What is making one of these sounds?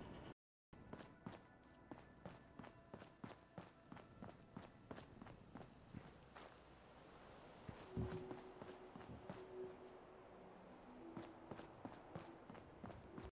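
Footsteps tread steadily over hard ground and concrete.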